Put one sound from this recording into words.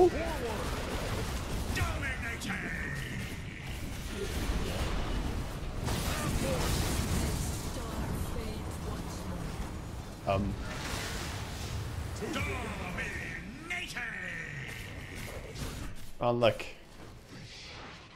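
Video game spells crackle, whoosh and explode.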